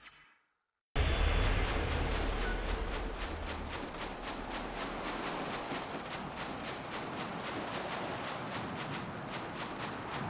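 Quick footsteps crunch on sand.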